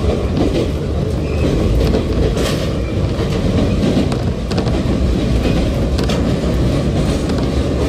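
A train rumbles steadily along the tracks, heard from inside.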